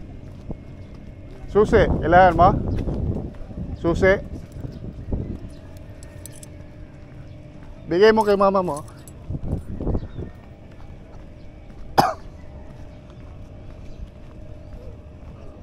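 A man jogs past with light footsteps on paving.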